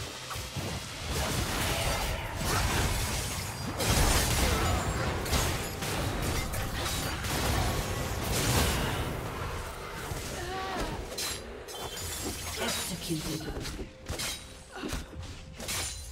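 Game spell effects and blasts crash and burst during a fight.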